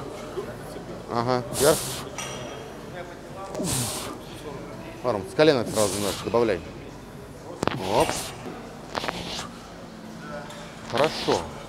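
A man grunts with effort while lifting a heavy barbell.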